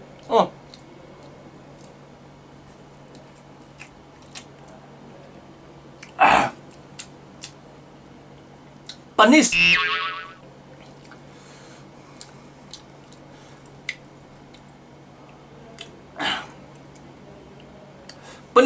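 A man chews and smacks his lips.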